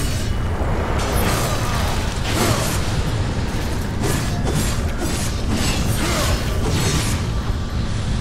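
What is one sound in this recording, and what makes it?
Blades clash and magic blasts crackle in a fast fight.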